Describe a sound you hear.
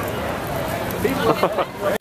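People chatter in a noisy crowd.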